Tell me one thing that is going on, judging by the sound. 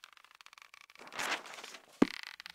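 A paper page turns with a quick rustle.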